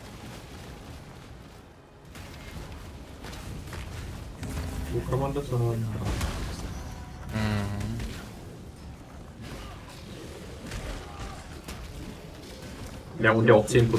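Game spells crackle and burst.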